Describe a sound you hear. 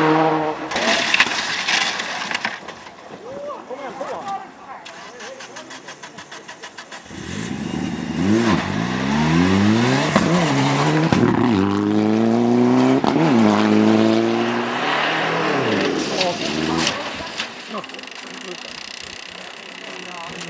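Snow sprays and hisses under spinning tyres.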